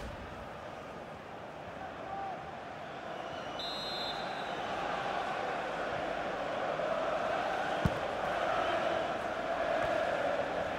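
A stadium crowd roars steadily, growing louder.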